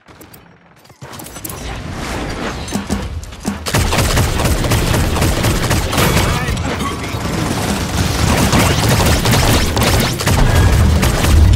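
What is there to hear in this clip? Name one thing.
Gunfire from a game's weapons crackles rapidly.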